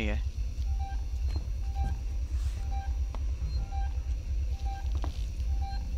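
A motion tracker beeps steadily about once a second.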